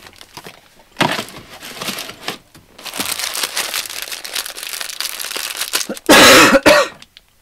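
Plastic wrapping crackles loudly as a man tears it open.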